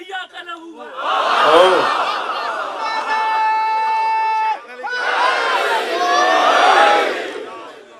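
A man chants loudly through a microphone and loudspeakers in a reverberant space.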